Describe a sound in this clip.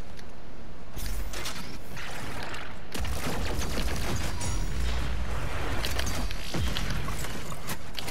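A gun fires in rapid bursts with crackling blasts.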